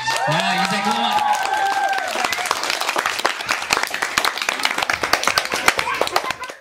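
A group of women and children clap their hands close by.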